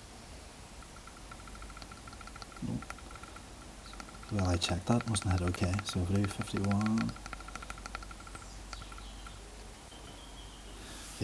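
A small plastic button clicks as it is pressed.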